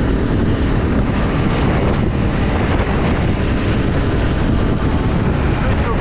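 Another motorcycle engine rides alongside.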